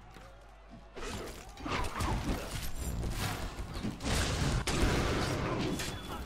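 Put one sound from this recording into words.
Magic spells crackle and burst in a game.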